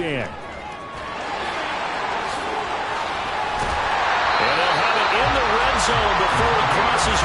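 A stadium crowd roars and cheers, swelling louder.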